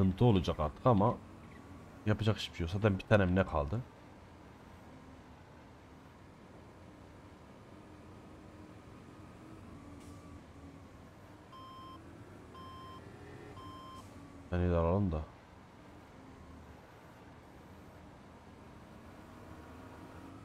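A loader's diesel engine hums steadily.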